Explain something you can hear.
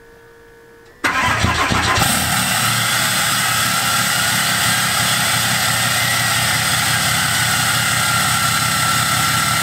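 A truck engine starts with a loud roar and rumbles steadily through its exhaust.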